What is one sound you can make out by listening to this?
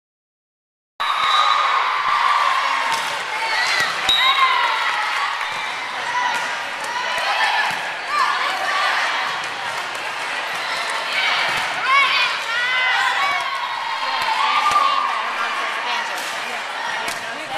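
Teenage girls shout and call out to each other in an echoing gym.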